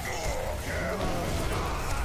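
A blast bursts with a crackling roar.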